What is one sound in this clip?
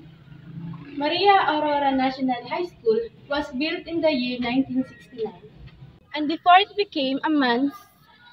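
A young woman speaks calmly to a nearby microphone.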